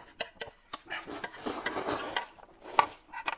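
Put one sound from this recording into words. A man slurps noodles loudly up close.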